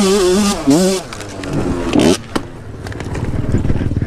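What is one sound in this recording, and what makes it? A dirt bike crashes to the ground with a thud.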